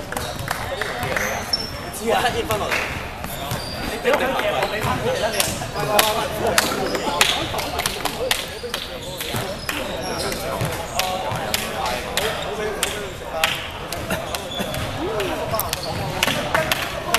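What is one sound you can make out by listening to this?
Basketballs bounce on a hard floor, echoing in a large hall.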